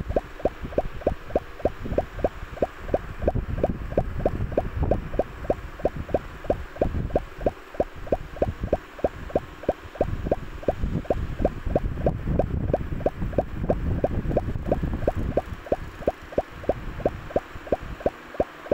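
Quick electronic bleeps repeat steadily as a game ball bounces off blocks.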